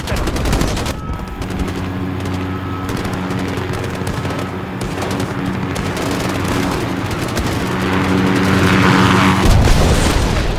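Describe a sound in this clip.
A helicopter's rotor drones steadily overhead.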